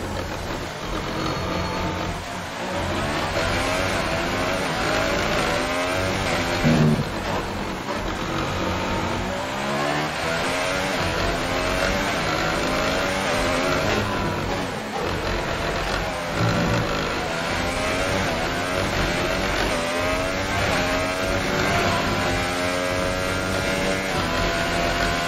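A simulated Formula One car engine revs high and shifts through the gears.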